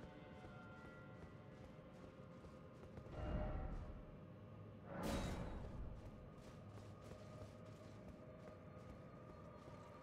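Armoured footsteps clink softly on stone and grass.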